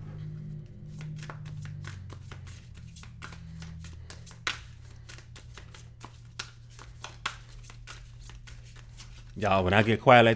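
Playing cards riffle and flick rapidly as they are shuffled.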